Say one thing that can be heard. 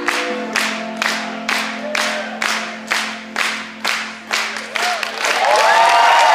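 A crowd claps in a steady rhythm in a large echoing hall.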